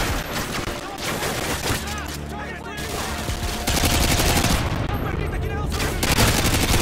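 Gunfire crackles in rapid bursts at close range.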